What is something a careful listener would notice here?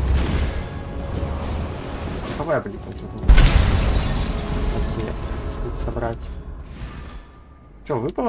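Magic spells blast and crackle in a fight.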